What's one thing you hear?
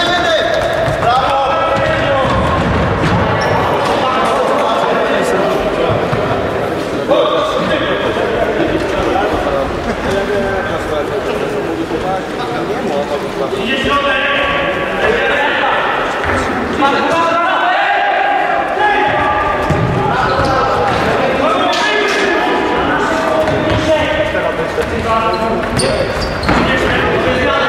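Spectators in a large echoing hall shout and cheer.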